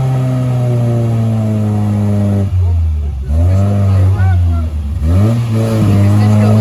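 Mud squelches and splashes under spinning tyres.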